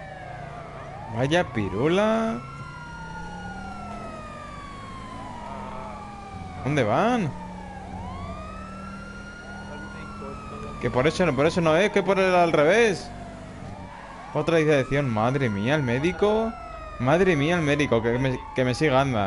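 A police siren yelps in quick bursts now and then.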